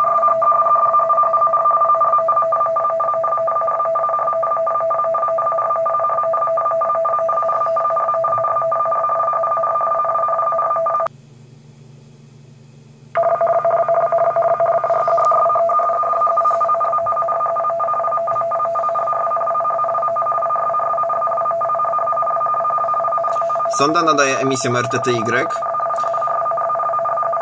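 A radio loudspeaker plays a steady, buzzing two-tone data signal.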